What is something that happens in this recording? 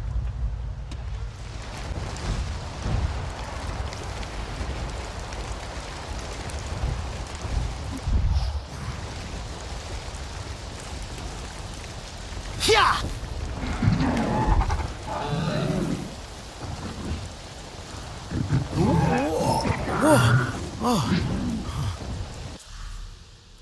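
Rain falls steadily in a gusty wind.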